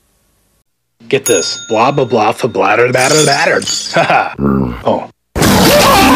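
A man speaks quickly and with animation.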